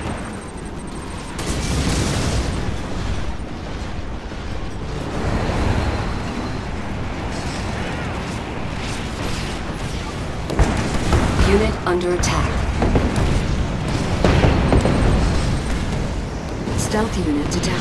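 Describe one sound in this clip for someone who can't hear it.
Gunfire rattles in a battle.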